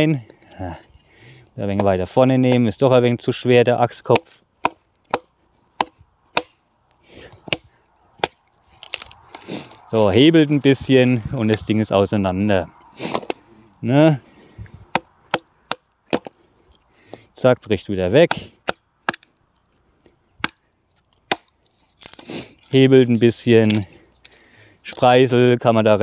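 A hatchet taps and knocks sharply into wood.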